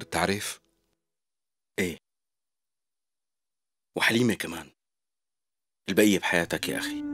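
A young man speaks in short, calm bursts with pauses between them, close by.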